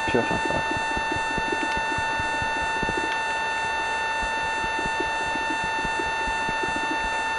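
Stone blocks crack and crumble under repeated pickaxe strikes.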